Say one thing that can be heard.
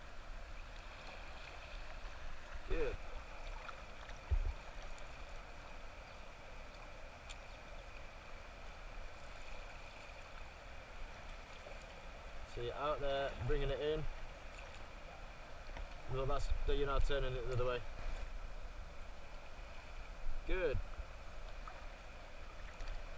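Paddles splash and dip in calm river water.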